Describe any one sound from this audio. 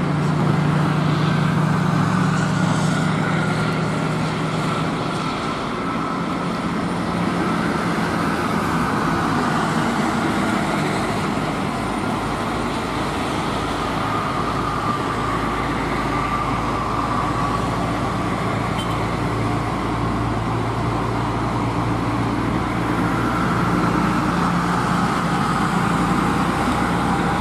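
Heavy truck engines rumble steadily close by.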